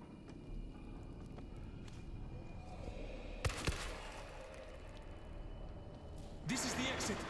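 Snarling creatures growl and shriek.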